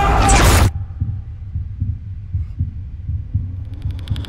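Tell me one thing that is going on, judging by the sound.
A young woman whimpers in fear behind her hand.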